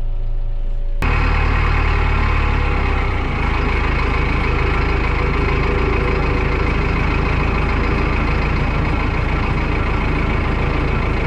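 A post hole auger whirs as it spins into the ground.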